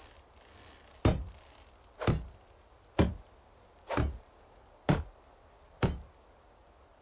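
A hammer strikes wood with sharp, regular knocks.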